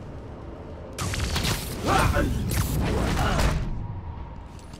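Heavy blows thud and whoosh in a scuffle.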